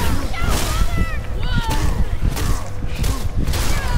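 A magical blast crackles and roars.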